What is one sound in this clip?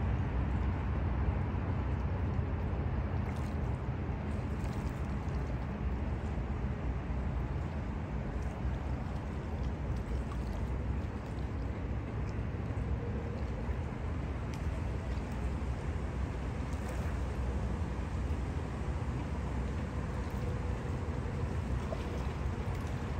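Water rushes and laps steadily close by.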